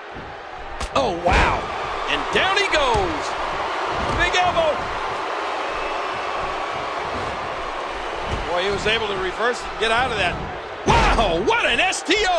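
A heavy body thuds onto a wrestling mat.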